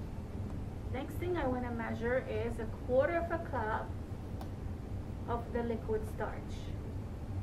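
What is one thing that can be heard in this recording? An older woman speaks calmly through a face mask, close by.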